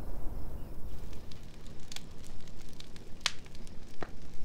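A wood fire crackles and pops.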